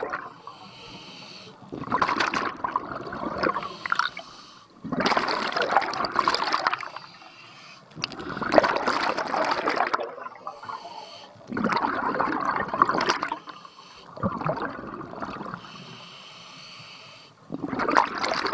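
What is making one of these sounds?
A diver's breathing regulator hisses softly with each inhale.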